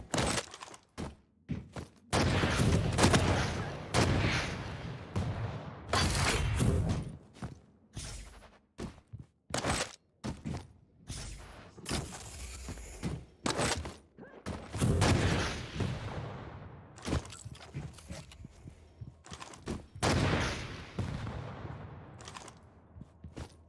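Game gunfire blasts and booms again and again.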